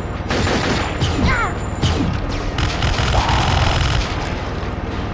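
A monster growls.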